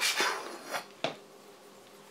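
A knife knocks against a wooden cutting board.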